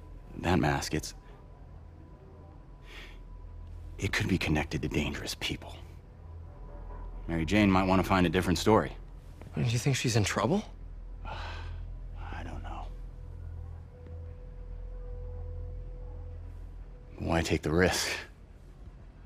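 A man speaks calmly and seriously, close by.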